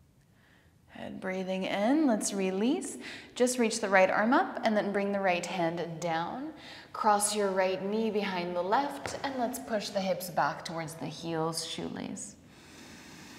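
A woman speaks calmly and softly, close to a microphone.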